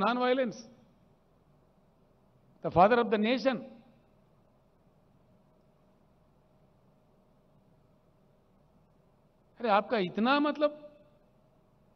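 An elderly man speaks into a microphone with long pauses, heard through a loudspeaker.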